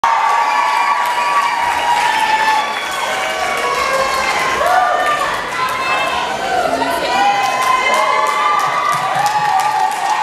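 A large crowd of young people cheers and screams loudly in a big echoing hall.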